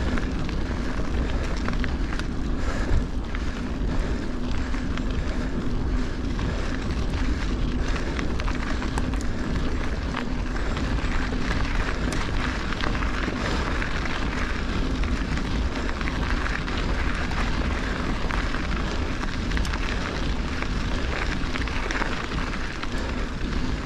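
Wind rushes past while riding outdoors.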